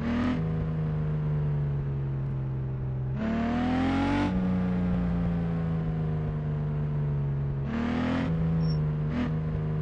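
A car engine hums steadily and revs up at times.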